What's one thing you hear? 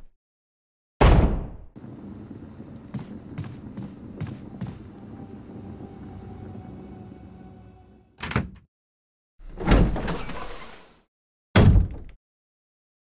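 A heavy door bangs shut.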